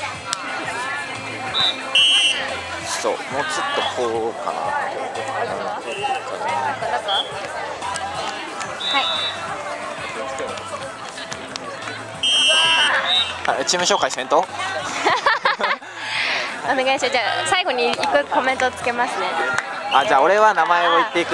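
A crowd of young people shouts and chatters outdoors.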